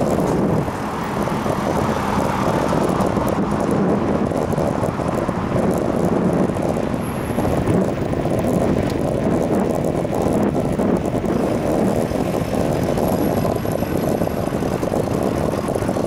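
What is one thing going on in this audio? Bicycle tyres roll steadily on asphalt.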